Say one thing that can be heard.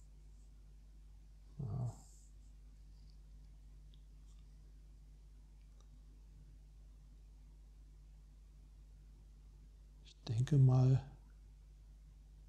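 A playing card slides softly across a cloth-covered table.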